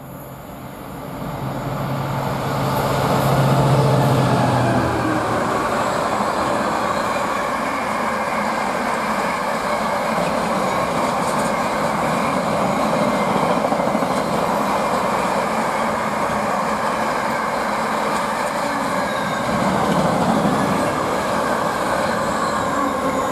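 A long freight train rumbles and clatters loudly along the rails.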